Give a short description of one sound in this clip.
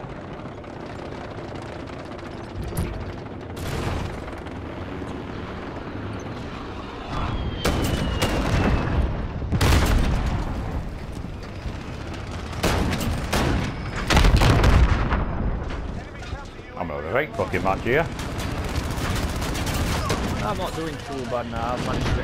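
A tank's main gun fires with heavy booms.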